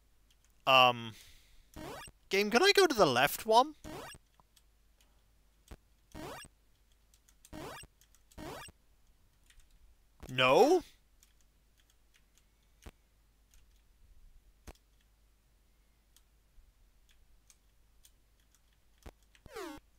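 Retro video game sound effects bleep and chirp in short bursts.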